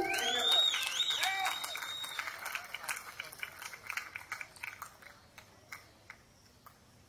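A small band plays lively acoustic music.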